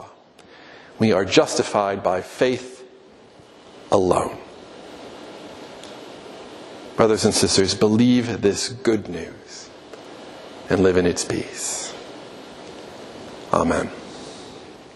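A man speaks with animation through a microphone in a room with some echo.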